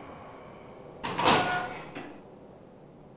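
A heavy metal door swings open.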